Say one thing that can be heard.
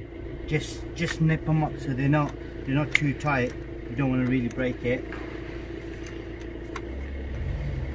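A wrench clicks and scrapes against a metal battery terminal.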